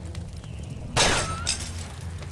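A single gunshot cracks sharply.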